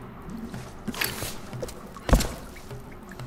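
A bow twangs as an arrow is shot.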